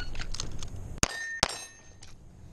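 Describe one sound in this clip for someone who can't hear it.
A pistol fires two shots outdoors.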